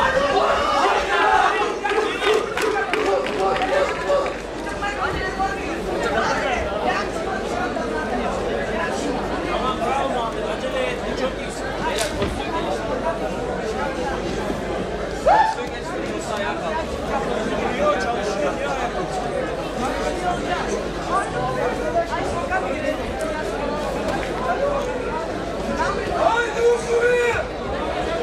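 Men shout instructions loudly from close by.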